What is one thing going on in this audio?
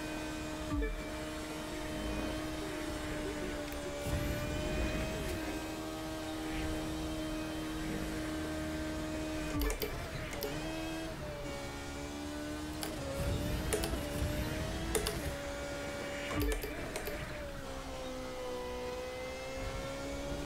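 A racing car engine whines at high pitch, rising and falling as it shifts gears.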